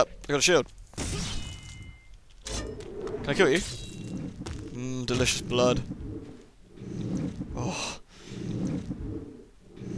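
A blade swishes and strikes during a fight.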